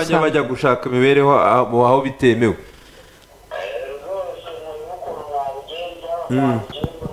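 A young man speaks clearly into a microphone, like a news presenter.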